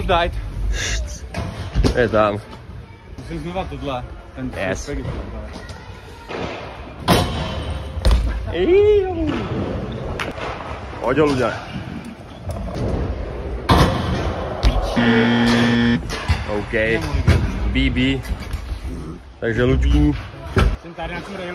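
Young men talk with animation close by, in turns.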